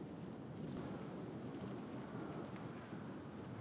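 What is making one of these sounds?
Small footsteps patter across leaf-strewn ground.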